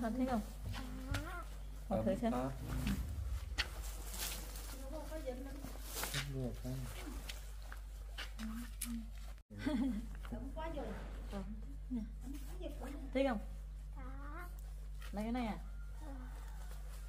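A woman talks warmly close by.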